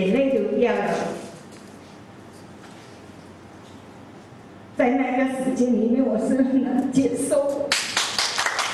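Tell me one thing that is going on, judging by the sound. A woman speaks with animation through a microphone and loudspeaker.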